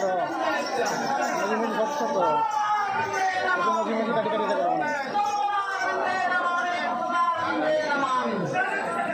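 A crowd of men and women chatter loudly nearby.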